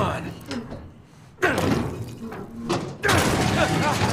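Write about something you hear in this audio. A heavy metal gate creaks open.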